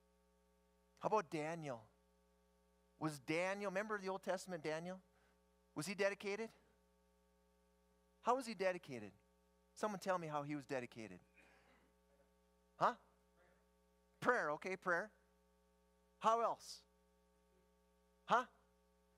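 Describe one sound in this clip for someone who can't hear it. A middle-aged man speaks calmly to an audience through a microphone, with pauses between phrases.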